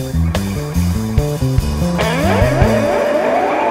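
Drums are struck hard in a fast fill with crashing cymbals.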